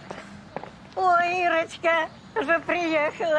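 An elderly woman speaks loudly with animation close by.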